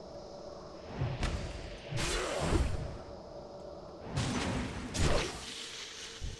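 Magic spells whoosh and crackle in loud bursts.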